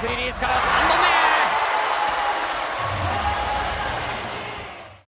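A large indoor crowd cheers and shouts loudly in an echoing arena.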